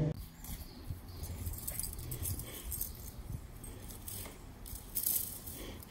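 A ball thuds as it is kicked across grass.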